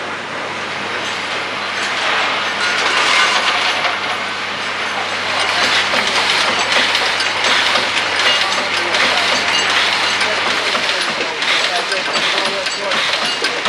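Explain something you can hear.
A machine hums steadily and clatters.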